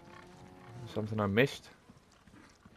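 A cow moos nearby.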